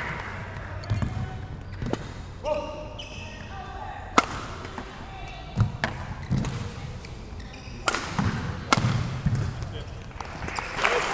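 A shuttlecock is struck sharply back and forth by rackets.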